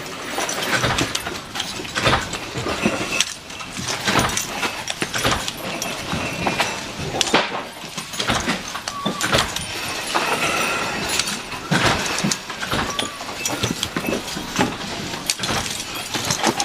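A cloth rubs and squeaks on a metal part.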